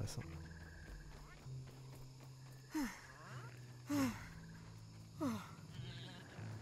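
Footsteps pad across soft ground.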